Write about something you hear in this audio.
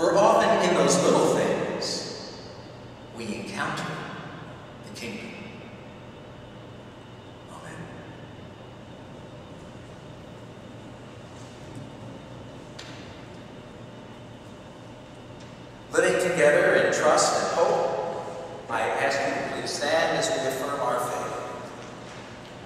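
A man speaks calmly through a microphone, echoing in a large hall.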